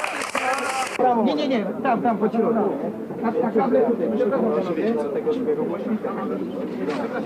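A man speaks with animation close by.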